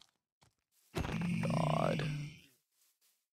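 A creature grunts and snorts.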